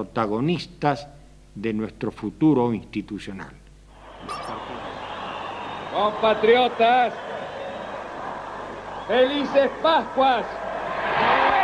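A man speaks forcefully into microphones, his voice booming through loudspeakers.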